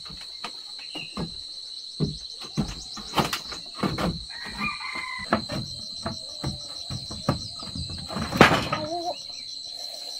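Wooden boards knock and rattle as they are handled.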